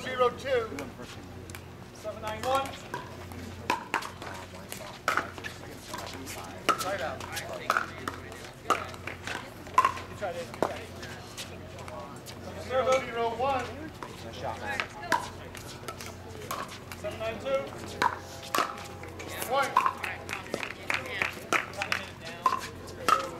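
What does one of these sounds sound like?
Paddles strike a plastic ball with sharp pops, back and forth.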